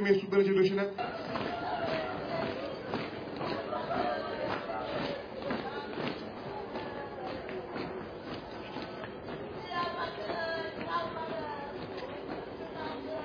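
A crowd of men and women cries out and chants together.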